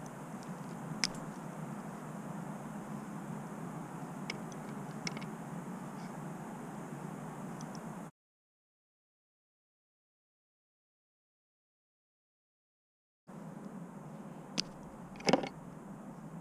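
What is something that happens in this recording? Wire cutters snip through thin wire with sharp clicks.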